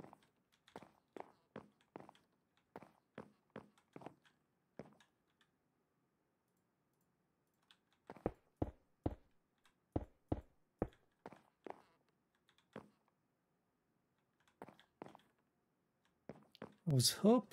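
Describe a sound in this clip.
Footsteps tap steadily on wooden planks.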